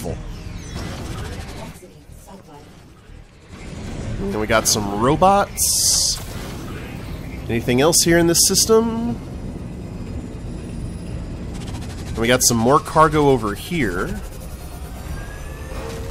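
A spaceship engine roars steadily with a low rumble.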